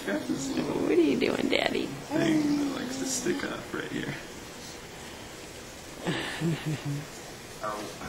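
A young man talks and laughs playfully close by.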